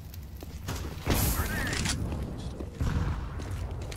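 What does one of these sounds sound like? A grenade explodes with a loud bang.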